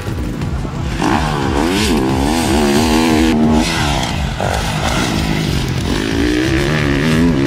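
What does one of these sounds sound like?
A dirt bike engine revs loudly and roars past.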